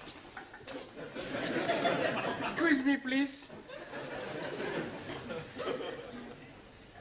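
An audience laughs in a large room.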